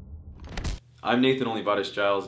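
A young man speaks calmly into a microphone, close by.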